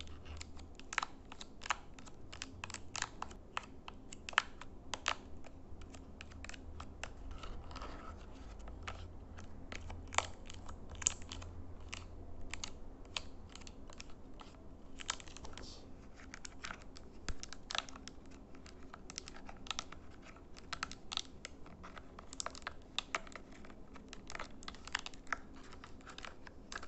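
Fingers press and click the buttons of a small plastic remote, close up.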